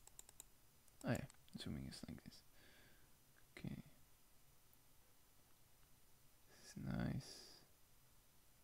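A young man speaks briefly and casually into a microphone, in short bursts.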